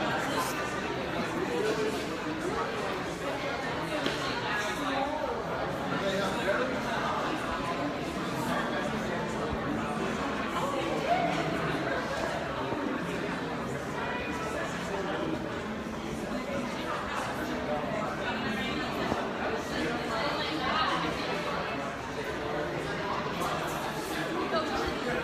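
A crowd of people murmur and chatter in a large echoing room.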